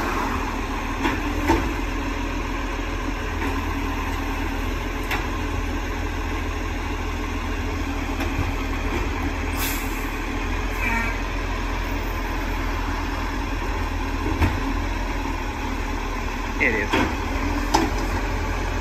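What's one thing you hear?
A bin clatters and thuds against metal.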